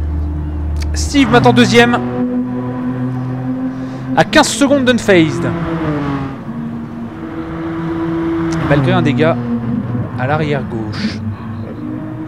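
Tyres squeal sharply in corners.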